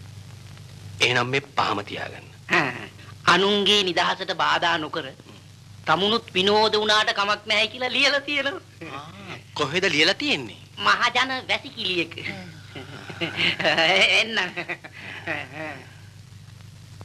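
A man talks with animation, close by.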